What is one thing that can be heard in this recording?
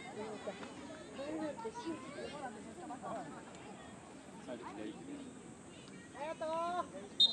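Children shout and call out to each other outdoors.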